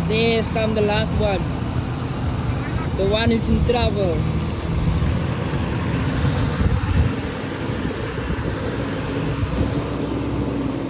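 Water splashes under tyres.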